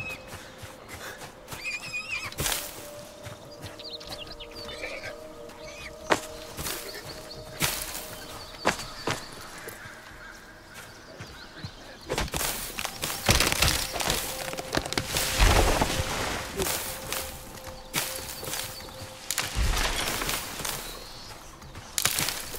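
Footsteps rustle through tall dry grass.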